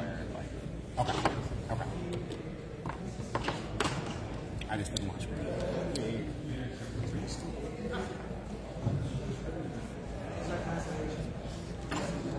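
Game pieces tap and click on a table.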